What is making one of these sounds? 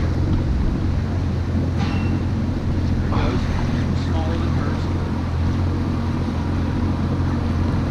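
A boat engine idles with a steady low rumble.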